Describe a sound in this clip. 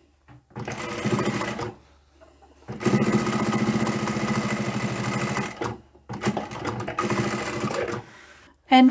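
A sewing machine runs in rapid bursts, stopping and starting.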